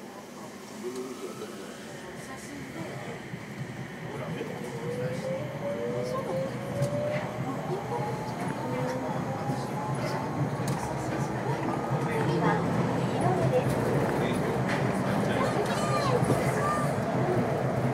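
A train rolls along its track with a steady rumble that grows louder as it speeds up.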